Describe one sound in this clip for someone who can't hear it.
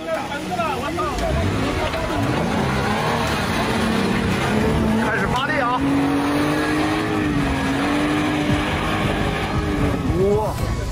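An off-road vehicle's engine revs and roars as it climbs a slope.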